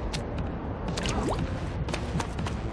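A game character splashes and squishes through ink.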